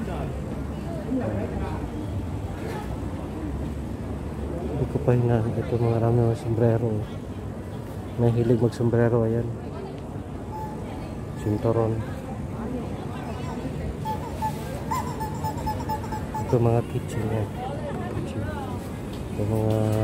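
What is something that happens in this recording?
Distant chatter and footsteps murmur through a busy outdoor market.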